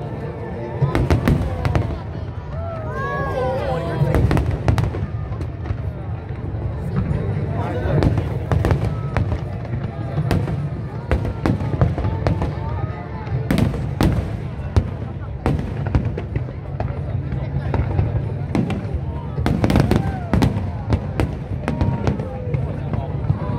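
Fireworks boom and crackle loudly outdoors, bursting again and again.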